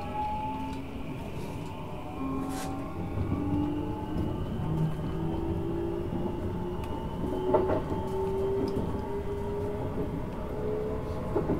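Train wheels rumble steadily on the tracks.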